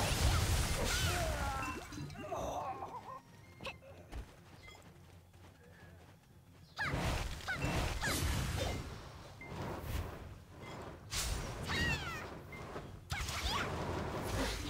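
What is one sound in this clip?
Magic blasts burst and whoosh in quick bursts.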